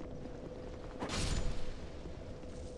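Clay pots smash and shatter.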